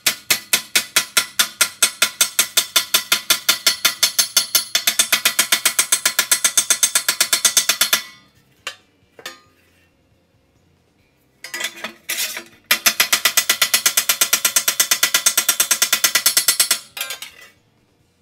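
A hammer pounds rapidly on sheet steel over an anvil.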